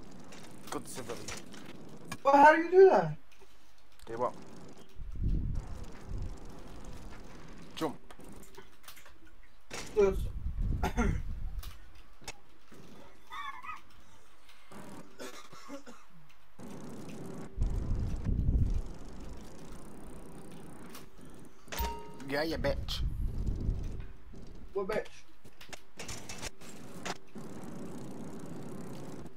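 A bicycle rolls across a hard floor.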